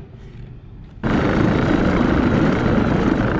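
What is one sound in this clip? Tyres roll over rough pavement outdoors.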